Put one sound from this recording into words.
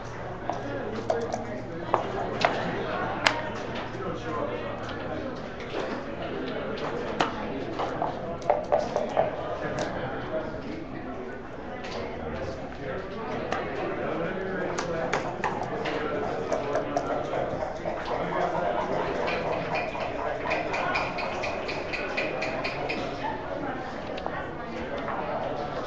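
Plastic game pieces click and clack against a wooden board.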